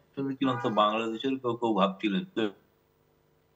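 A middle-aged man speaks calmly through an online call.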